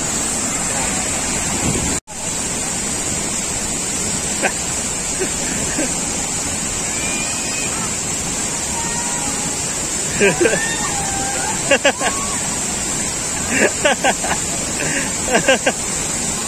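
Rushing water roars steadily over rocks.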